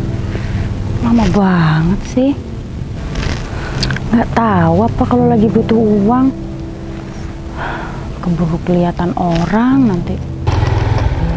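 A young woman speaks expressively close by.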